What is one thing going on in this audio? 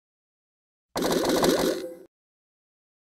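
Coins jingle as they are collected.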